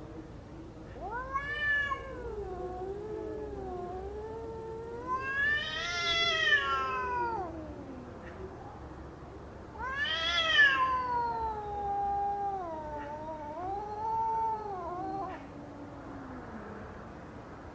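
A cat meows and yowls in long, wavering cries close by.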